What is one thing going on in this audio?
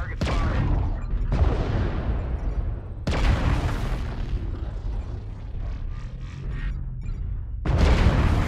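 Heavy weapons fire in loud booming bursts.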